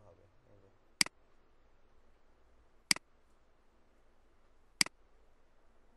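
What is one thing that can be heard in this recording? A mouse button clicks a few times.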